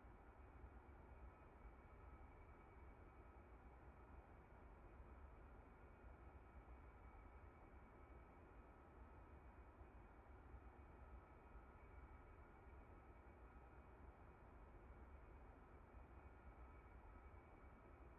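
A jet engine hums and whines steadily inside a closed cockpit.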